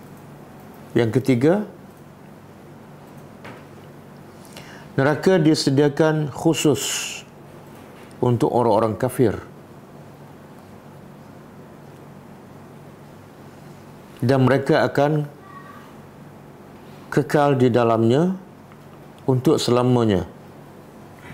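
An elderly man reads out slowly into a microphone, in short phrases with pauses between them.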